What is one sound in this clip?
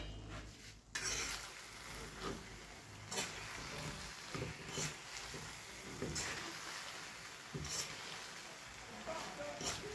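A spoon scrapes and stirs food in a metal pan.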